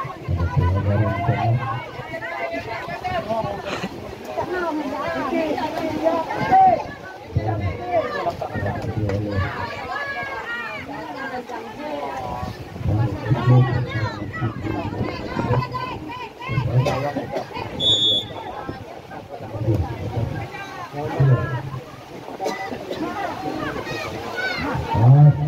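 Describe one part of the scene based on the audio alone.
A crowd of young people shout and chatter nearby, outdoors.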